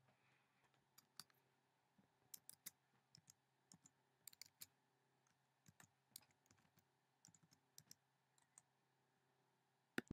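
Fingers tap and click on keyboard keys.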